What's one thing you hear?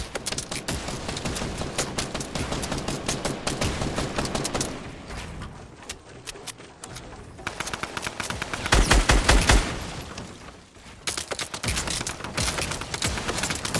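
Wooden walls clatter and thud into place.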